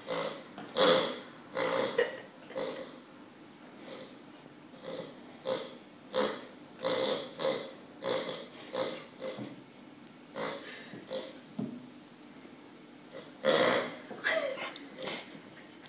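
A squeaky toy squeaks again and again as a puppy chews on it.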